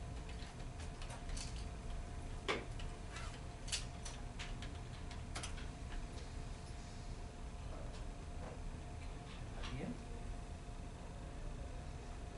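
A projector fan hums steadily.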